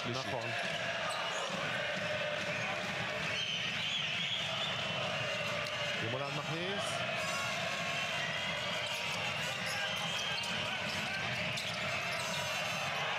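A large indoor crowd cheers and chants loudly in an echoing arena.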